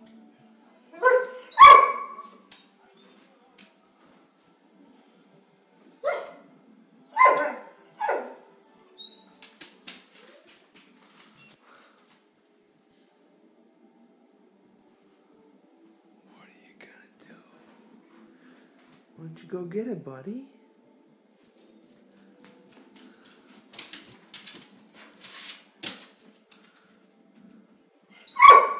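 A dog barks and howls loudly, close by.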